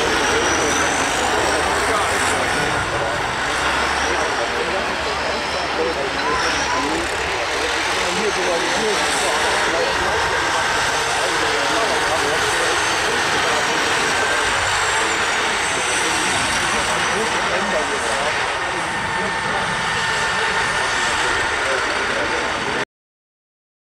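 Diesel engines of stripped-down combine harvesters roar and rev.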